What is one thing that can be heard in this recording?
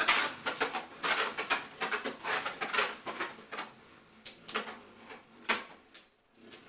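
Spinning tops clack sharply against each other.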